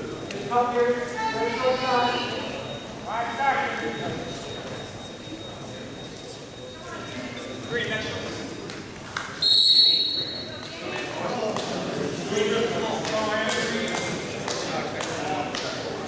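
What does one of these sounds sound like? Spectators shout and cheer in a large echoing gym.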